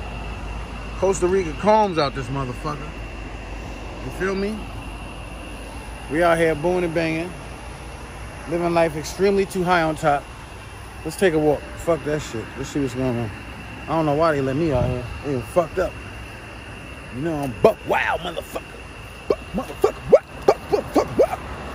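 A man talks animatedly, close to the microphone.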